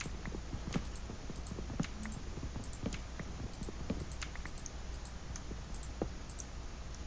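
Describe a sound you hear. Blocks break with quick, repeated crunching knocks.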